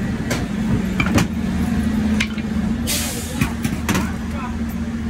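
Metal tools clank and knock against a door.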